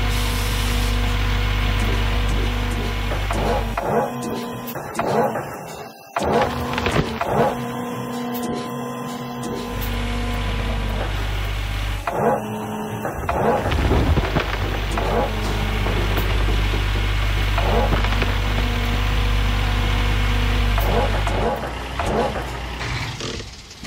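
Dirt and rocks rumble and clatter as they pour.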